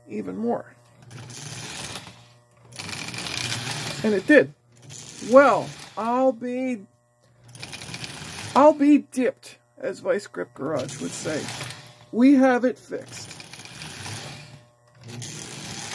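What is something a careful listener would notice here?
Metal wheels roll back and forth along a toy train track.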